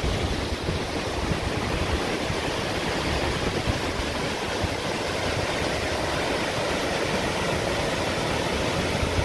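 A waterfall splashes steadily into a pool.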